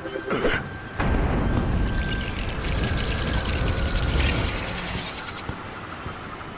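A deep magical rumble swells and then fades.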